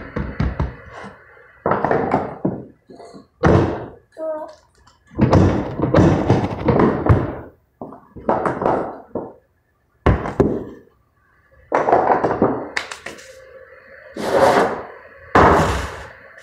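A metal pan knocks against a wooden table.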